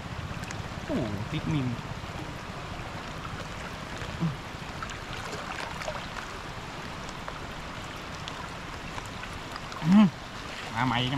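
Floodwater rushes and gurgles steadily outdoors.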